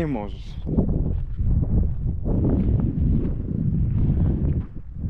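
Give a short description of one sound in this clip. A man speaks calmly close to the microphone.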